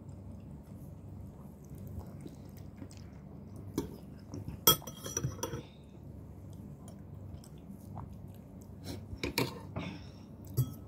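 A woman slurps noodles up close.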